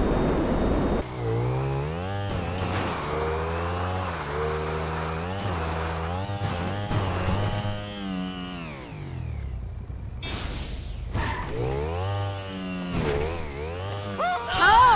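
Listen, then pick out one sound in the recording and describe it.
A motorcycle engine revs up and down.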